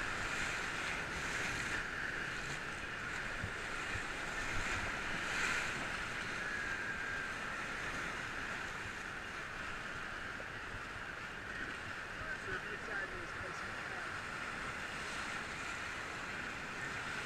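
A paddle splashes in rushing water.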